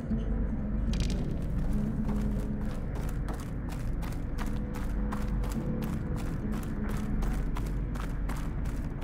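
Quick footsteps run over a hard floor.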